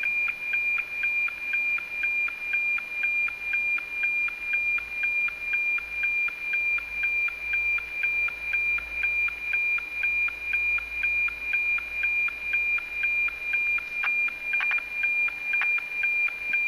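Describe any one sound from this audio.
A radio signal whines at a steady high pitch with a fast, even ticking beat.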